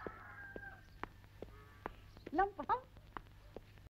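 A woman's heels click on hard ground.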